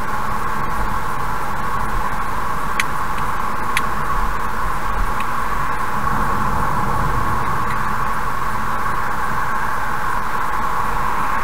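A car's tyres hum steadily on a highway.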